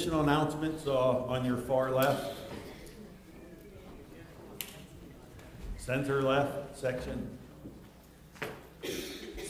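An elderly man speaks calmly into a microphone in a large echoing room.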